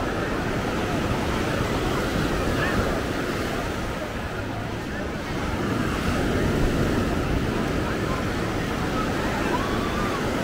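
A crowd of beachgoers chatters in the distance.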